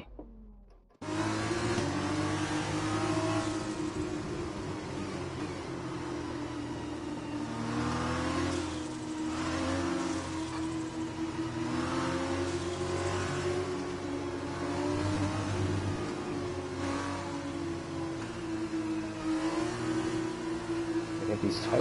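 A racing car engine whines and revs up and down as gears shift.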